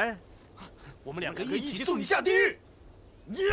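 A young man answers with animation.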